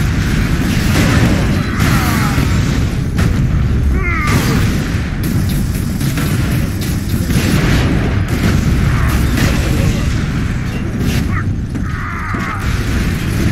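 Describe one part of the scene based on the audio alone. Weapons fire in loud bursts.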